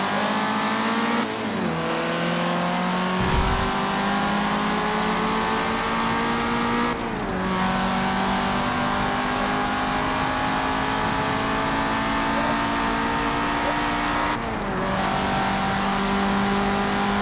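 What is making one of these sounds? A racing car engine revs hard and climbs in pitch through the gears.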